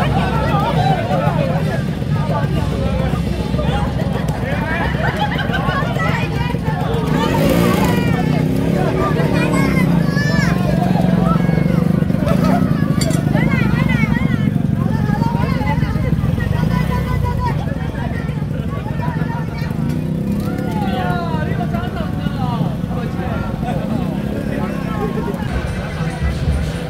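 People in a street crowd chatter and call out nearby.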